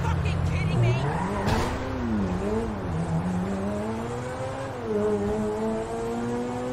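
A car engine hums and revs, rising and falling in pitch as the car drives.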